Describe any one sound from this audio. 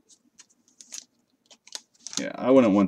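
Plastic card sleeves click and rustle in hands.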